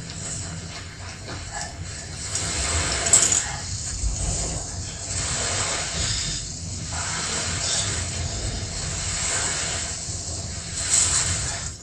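Wind blows steadily across open ground.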